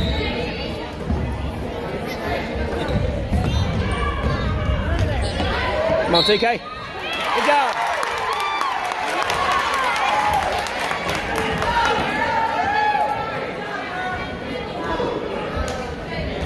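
Spectators cheer and shout in an echoing gym.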